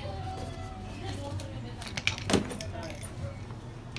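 A rubber inner tube flops onto a concrete floor.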